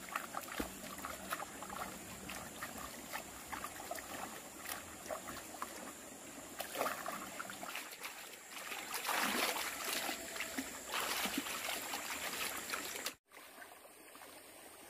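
A shallow stream gurgles and flows over stones.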